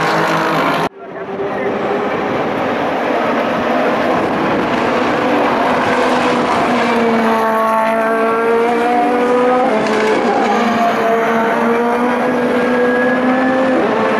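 A single race car engine howls close by, shifting gears as it accelerates.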